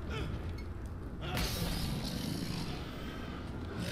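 A sword strikes a creature with heavy blows.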